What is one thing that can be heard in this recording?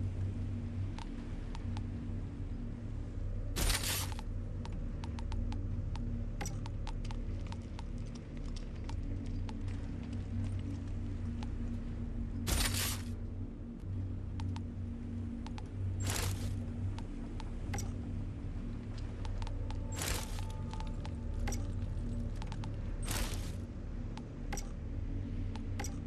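A game menu clicks softly and repeatedly.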